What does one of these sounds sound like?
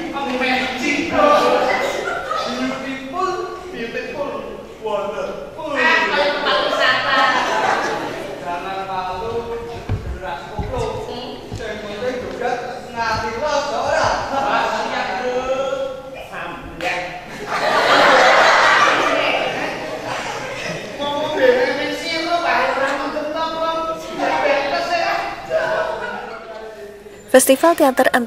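A young man speaks loudly on a stage.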